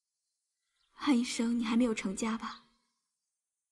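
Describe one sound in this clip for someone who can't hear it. A young woman asks a question gently up close.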